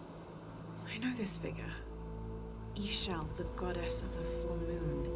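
A young woman speaks quietly and thoughtfully.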